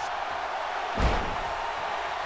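A heavy thud hits a wrestling mat.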